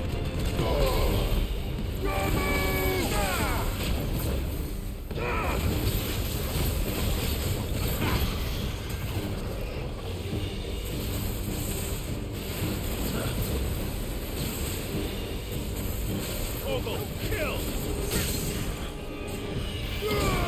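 A huge beast growls and roars.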